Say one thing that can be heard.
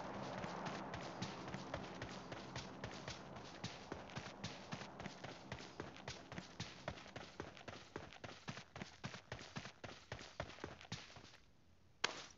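Footsteps thud quickly over grass.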